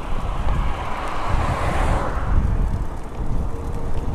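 A car whooshes past in the opposite direction.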